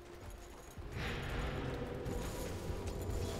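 Weapons clash and spells crackle in a fight.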